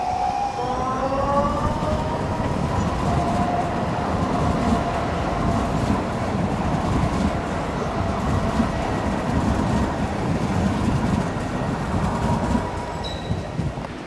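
A tram pulls away, its electric motor whining upward in pitch.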